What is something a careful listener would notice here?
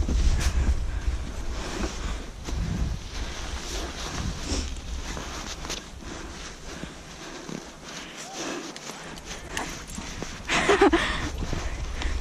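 A sled slides over snow with a steady scraping hiss.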